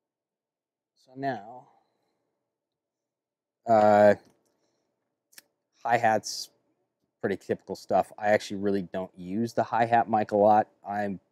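A man talks calmly and close by, with pauses.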